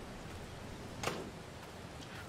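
A metal gate swings shut with a clank.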